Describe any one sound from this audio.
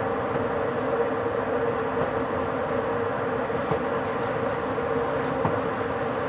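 A train rolls steadily along the rails with a constant rumble and hum.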